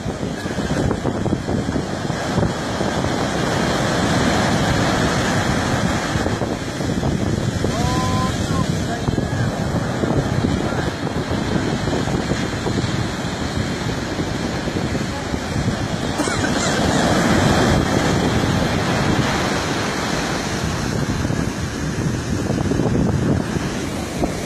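Waves crash and wash up onto a beach nearby.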